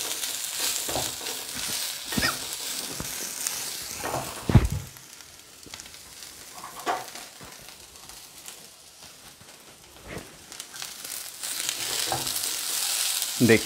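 Vegetables sizzle in hot oil in a pan.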